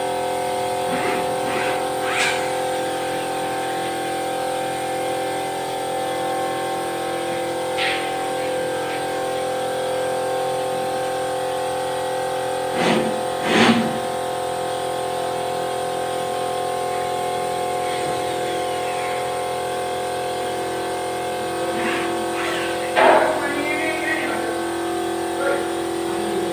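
A heavy wooden door knocks and thumps as it is shifted.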